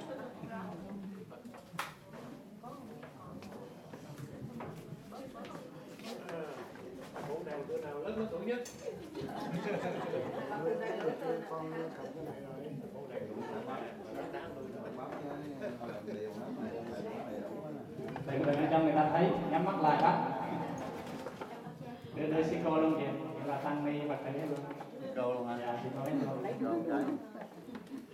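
Many people chatter and talk in a room.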